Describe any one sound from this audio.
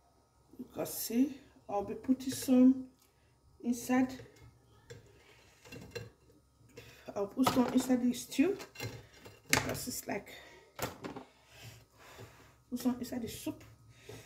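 A wooden spoon stirs and knocks against a metal pot.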